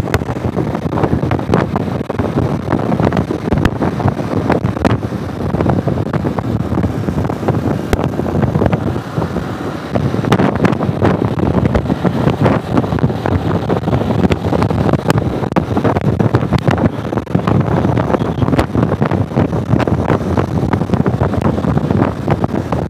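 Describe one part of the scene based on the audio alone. A motorcycle engine hums steadily while riding along.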